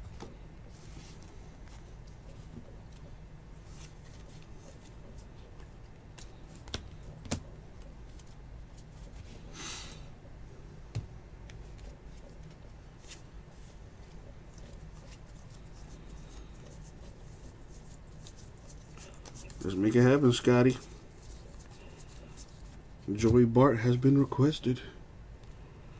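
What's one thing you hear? Trading cards rustle and click as hands flip through them.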